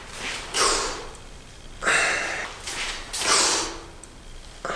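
A man puffs out short bursts of breath.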